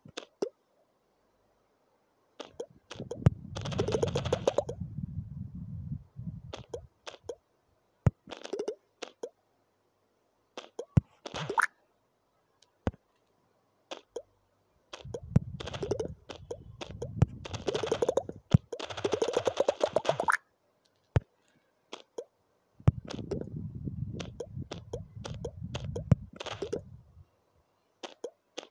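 A bouncing ball taps again and again with short clicks.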